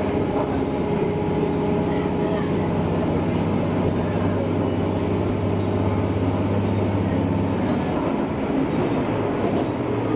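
A train's motor hums low, rising in pitch.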